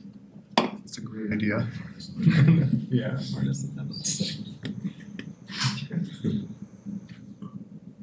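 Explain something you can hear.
A man lectures calmly in a room.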